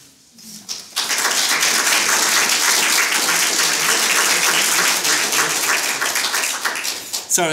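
An audience claps loudly and steadily.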